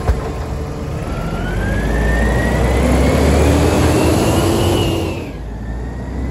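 A garbage truck revs and drives past with a rising whine.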